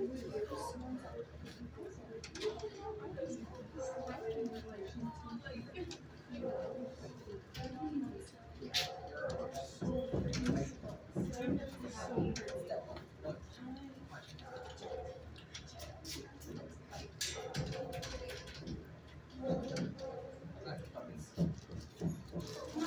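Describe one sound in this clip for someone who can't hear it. A large dog sniffs at the floor.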